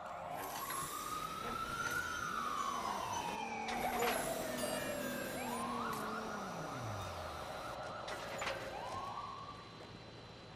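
A small remote-control car's electric motor whirs, rising and falling in pitch.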